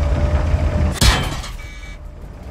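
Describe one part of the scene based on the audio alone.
A tank cannon fires with a sharp boom.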